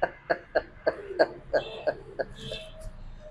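A man laughs in short bursts close by.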